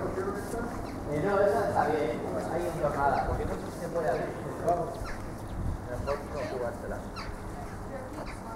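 Children shout and call out in the distance outdoors.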